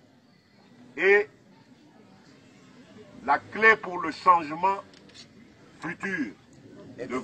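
A man shouts loudly into a microphone over a loudspeaker outdoors.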